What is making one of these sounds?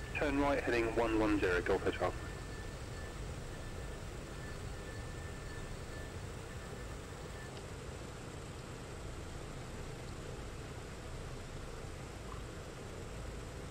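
An aircraft engine hums low and steadily.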